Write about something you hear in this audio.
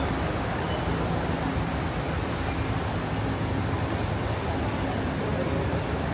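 A bus engine idles with a steady low hum nearby.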